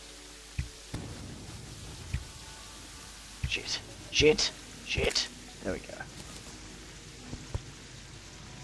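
Game sound effects of a bow firing arrows come in short bursts.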